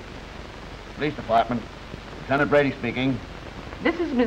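A middle-aged man speaks briskly into a telephone.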